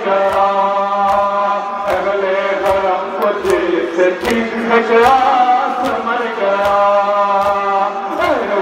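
A crowd of men beats their chests in a steady rhythm.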